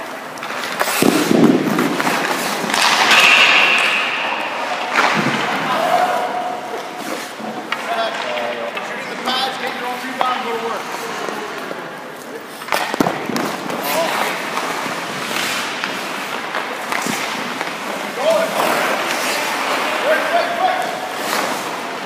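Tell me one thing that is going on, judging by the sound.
A hockey stick slaps a puck with a sharp crack.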